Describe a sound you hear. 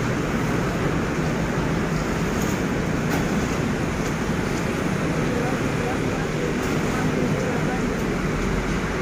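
Helicopters drone and thud overhead.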